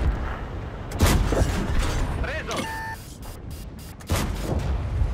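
A tank gun fires with a loud boom.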